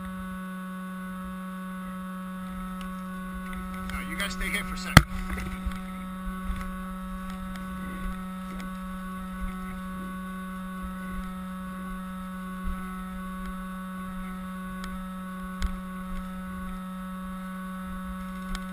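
Footsteps crunch over dry leaves and twigs outdoors.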